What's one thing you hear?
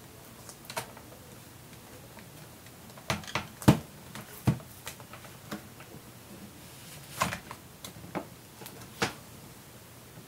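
A laptop knocks and scrapes on a wooden tabletop as it is moved.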